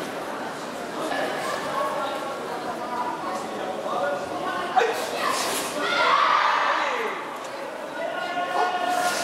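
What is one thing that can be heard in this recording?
Many men's voices murmur and call out in a large echoing hall.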